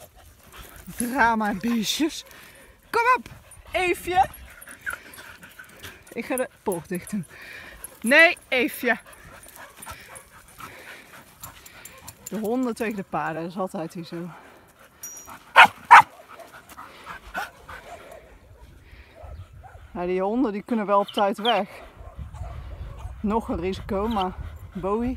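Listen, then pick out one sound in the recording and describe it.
Dogs whine and yelp close by.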